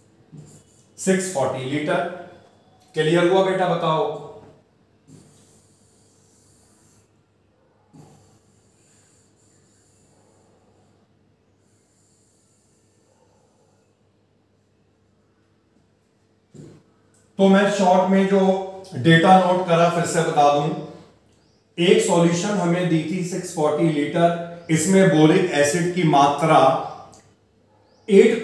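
A man speaks calmly and clearly into a close microphone, explaining.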